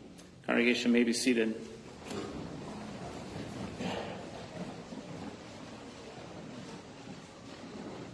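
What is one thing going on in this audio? A congregation shuffles and rustles as people sit down.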